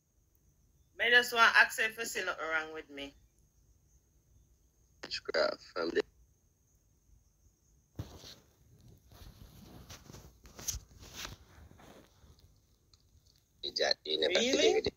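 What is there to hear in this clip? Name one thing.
A young man talks with animation through an online call.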